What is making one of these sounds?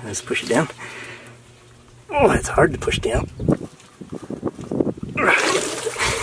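Boots stomp and splash in shallow water.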